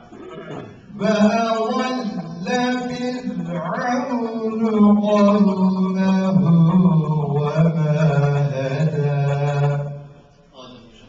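A man chants melodically into a microphone, close and amplified.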